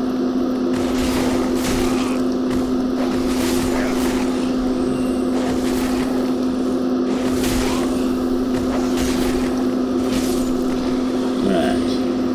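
Sword blows clang and thud in a game fight.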